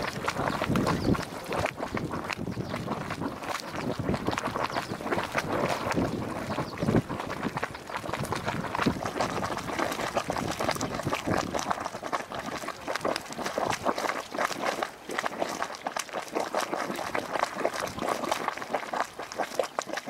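Water bubbles and gurgles steadily in a hot pool.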